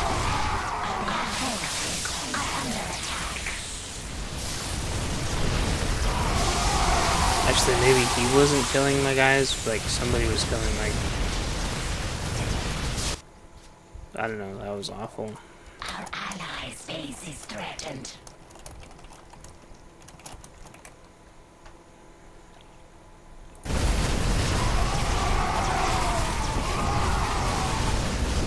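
Battle sounds clash and crackle as game creatures fight.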